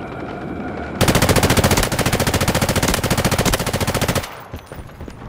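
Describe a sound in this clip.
A machine gun fires a long rapid burst close by.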